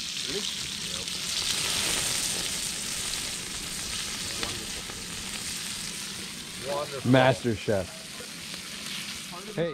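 A campfire crackles and hisses close by.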